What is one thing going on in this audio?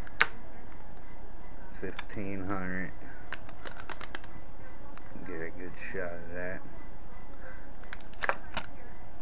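Plastic packaging crinkles and taps as it is handled.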